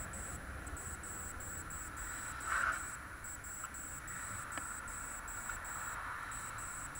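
Wind rushes past at riding speed.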